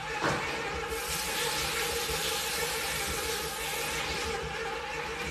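Water runs from a tap and splashes into a sink.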